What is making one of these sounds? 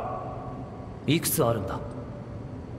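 A young man asks a question calmly.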